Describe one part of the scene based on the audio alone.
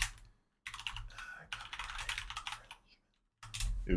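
Keys clatter quickly on a keyboard.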